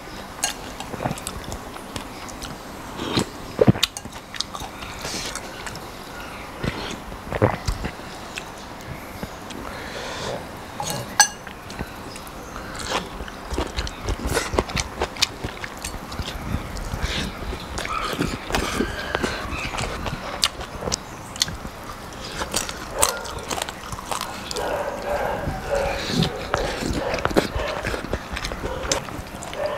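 A man chews crunchy fresh vegetables close to the microphone.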